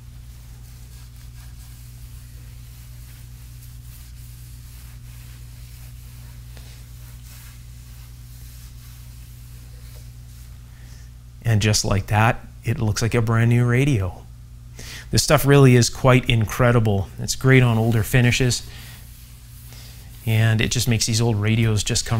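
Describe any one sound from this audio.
A cloth rubs softly over a polished wooden surface.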